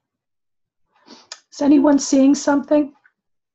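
An elderly woman speaks calmly into a nearby microphone.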